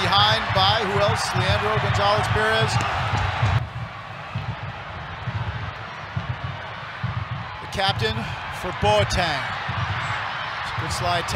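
A large crowd roars and chants in a stadium.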